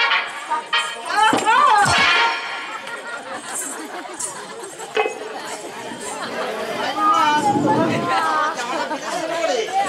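A young woman speaks loudly and dramatically through a microphone.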